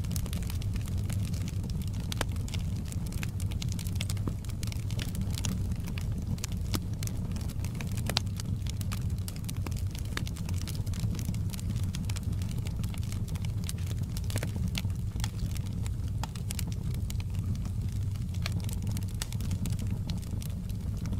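Flames roar softly with a low, steady rumble.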